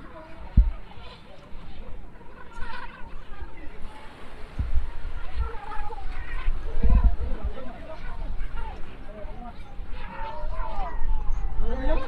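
Wind buffets the microphone in gusts.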